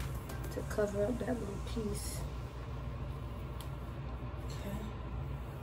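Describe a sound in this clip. A comb brushes through thick hair.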